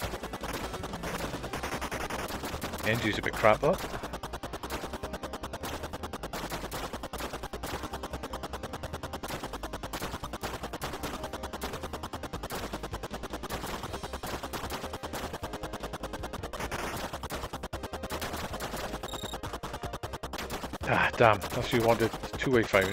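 Rapid electronic shots fire in a fast steady rhythm.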